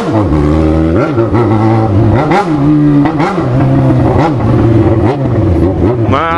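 A motorcycle engine revs up and down repeatedly, loud and close.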